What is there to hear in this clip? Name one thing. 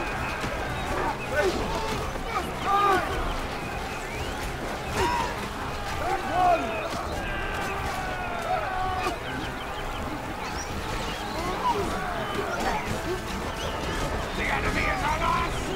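Huge beasts roar and bellow.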